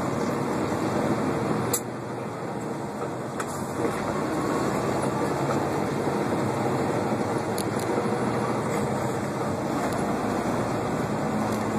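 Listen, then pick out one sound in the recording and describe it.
A semi truck's engine drones from inside the cab as it drives along.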